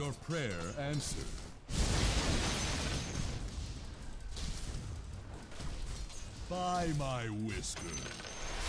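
Magic spells whoosh and crackle in a fantasy battle.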